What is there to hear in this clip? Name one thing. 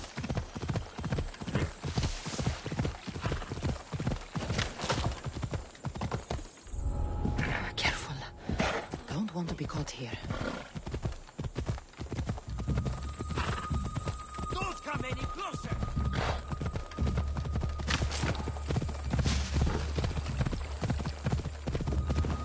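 Horse hooves thud rhythmically on dirt and grass.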